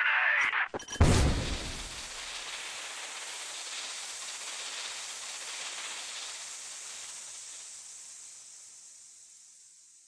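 Smoke hisses steadily from a grenade and slowly fades.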